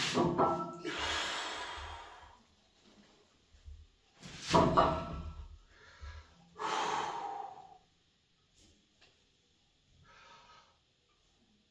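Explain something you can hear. A person breathes out heavily with each effort.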